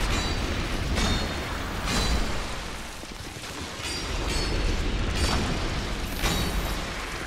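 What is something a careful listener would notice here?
Weapon blows strike flesh with heavy thuds.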